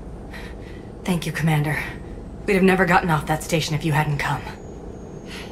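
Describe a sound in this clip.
A woman speaks warmly and gratefully.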